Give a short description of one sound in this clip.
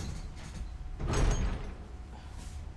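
A heavy metal door scrapes and creaks open.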